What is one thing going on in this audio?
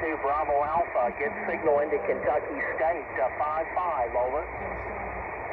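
A man's voice speaks through a crackly shortwave radio loudspeaker.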